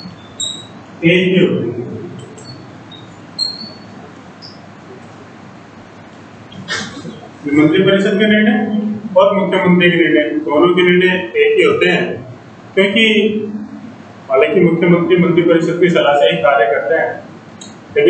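A man speaks calmly and clearly, close by, as if teaching.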